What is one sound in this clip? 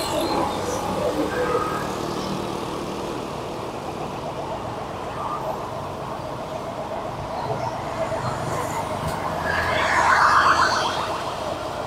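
A motorbike engine hums steadily up close as it rides along.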